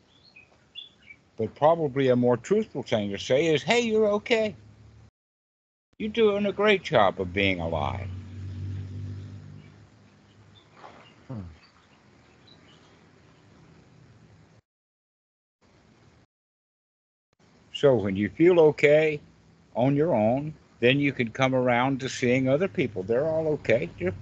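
A young man talks over an online call.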